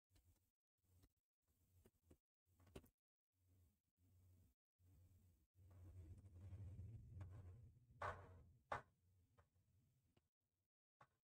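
Footsteps thud on a metal floor.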